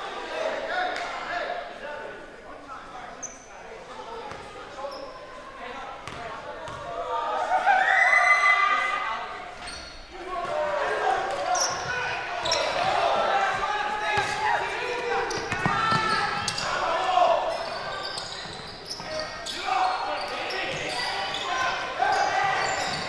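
Spectators chatter and shout from the stands.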